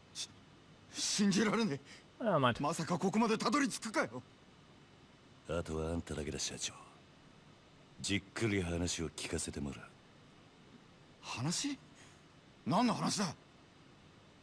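A man speaks in a shaky, startled voice.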